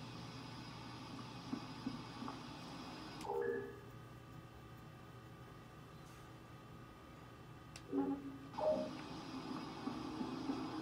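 A video game's low ambient hum plays through a TV speaker.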